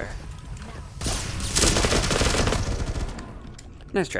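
Automatic gunfire rattles rapidly in a quick burst.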